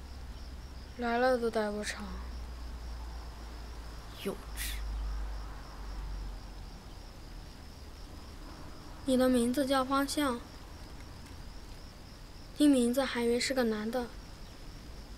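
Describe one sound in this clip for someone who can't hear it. A boy speaks quietly and flatly close by.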